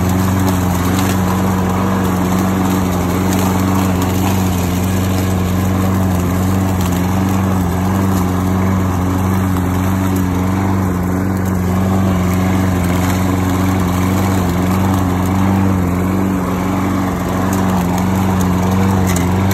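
Mower blades cut through grass and leaves.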